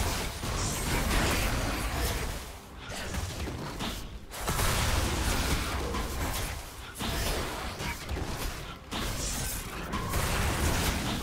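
Magic spells crackle and whoosh in bursts.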